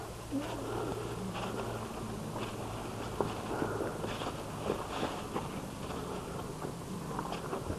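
Hands and feet scrape and scuff on rough stone as a man climbs.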